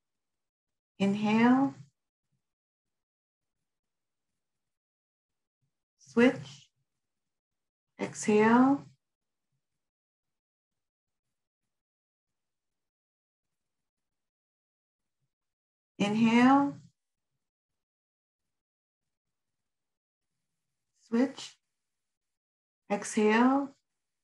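A woman speaks in short, halting phrases over an online call, with long pauses between them.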